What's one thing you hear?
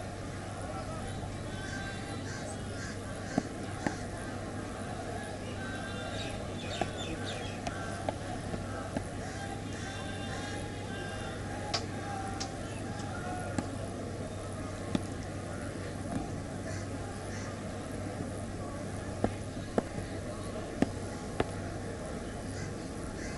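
A large outdoor crowd murmurs steadily.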